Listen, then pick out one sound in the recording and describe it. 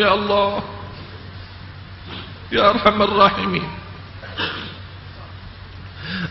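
A man chants a prayer in a melodic voice through a microphone, with echo.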